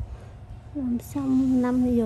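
A metal tool scrapes lightly against skin.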